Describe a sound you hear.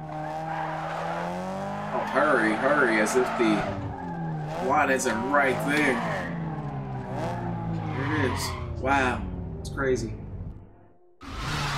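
A car engine revs loudly and rises and falls in pitch.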